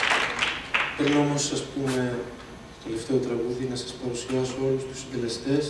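A man sings through a microphone and loudspeakers in a large hall.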